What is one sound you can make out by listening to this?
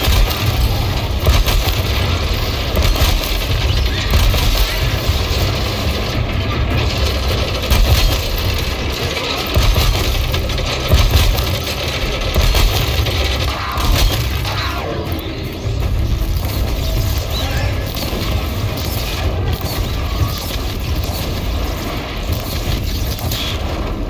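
A large mechanical creature clanks and whirs overhead.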